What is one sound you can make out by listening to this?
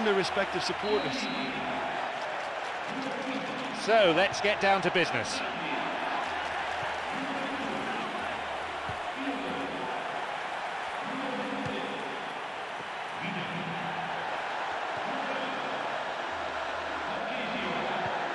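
A stadium crowd murmurs and cheers.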